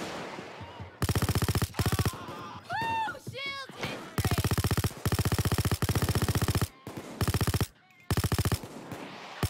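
An automatic gun fires in rapid bursts.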